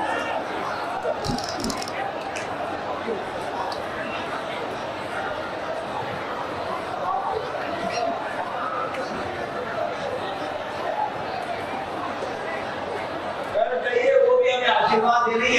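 A large crowd murmurs and chatters in a big hall.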